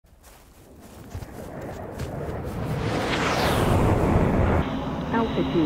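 A jet engine roars, growing louder as a jet approaches and passes.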